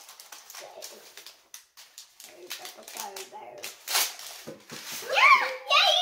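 Plastic toy figures click and tap on a hard surface.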